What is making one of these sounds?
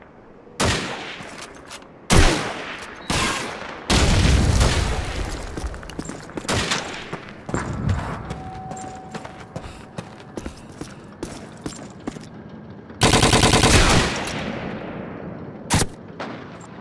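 Loud gunshots and blasts crack and echo off walls.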